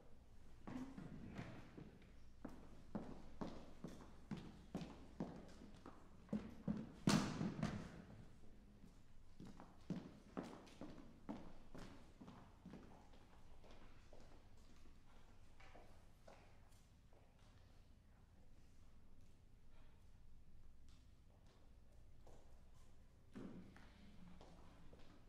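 A piano plays in a large echoing hall.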